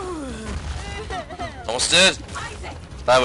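An explosion booms in a video game.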